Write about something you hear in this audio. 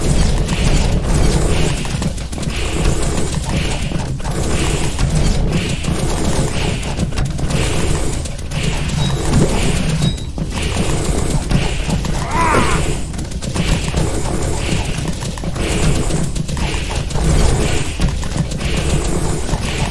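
Upbeat music with a steady beat plays throughout.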